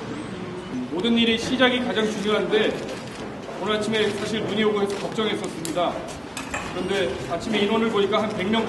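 A middle-aged man speaks calmly, close to a microphone.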